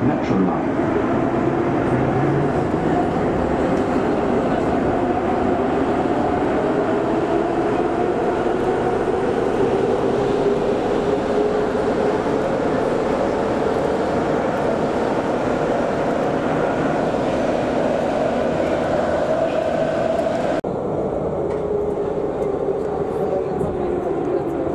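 A train's electric motor whines, slowly rising and falling in pitch.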